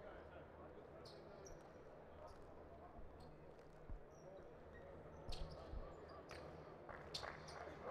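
A large indoor crowd murmurs and chatters in an echoing arena.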